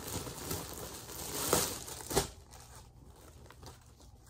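Fabric rustles as clothing is handled.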